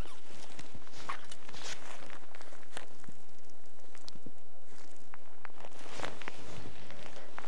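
Snow crunches underfoot as a man shifts his feet.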